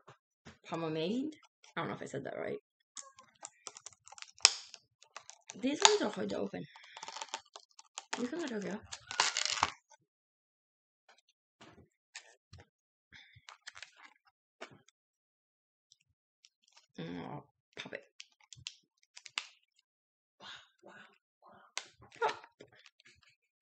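Plastic packaging crinkles and rustles in hands.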